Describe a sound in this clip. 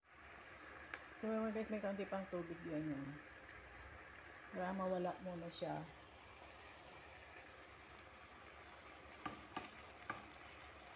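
Chicken sizzles softly in a pan.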